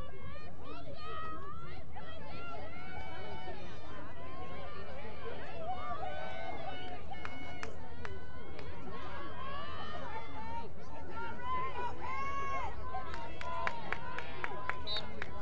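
Young women call out and chatter outdoors.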